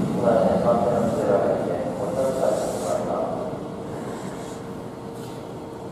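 An electric train rolls slowly into a station, its motors whining and slowly fading.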